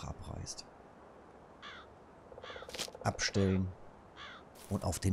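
A man speaks into a close microphone with animation.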